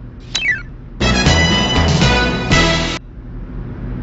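A chiming game jingle plays as a level is completed.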